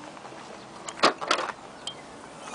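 A car tailgate unlatches and swings open with a clunk.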